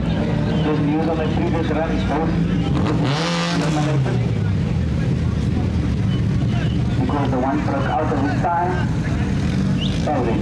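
A second car engine idles and revs up close.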